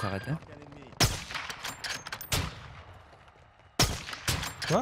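A sniper rifle fires with a sharp crack.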